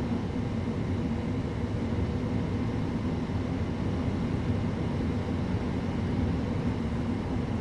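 A train rumbles steadily along the track.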